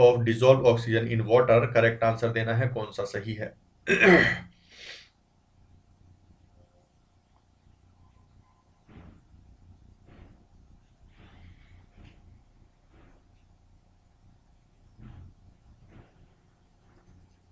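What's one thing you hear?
A man speaks calmly into a close microphone, then quietly with long pauses.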